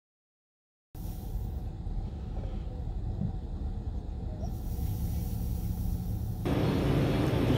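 Traffic hums outside a storefront.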